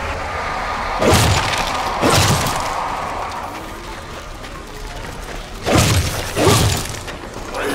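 Loud gunshots crack several times.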